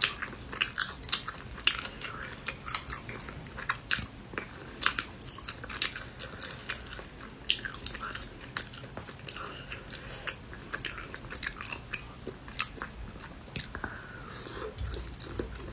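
A young woman chews and smacks her lips loudly close to a microphone.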